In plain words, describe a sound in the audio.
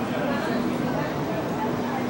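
A crowd murmurs on a moving escalator.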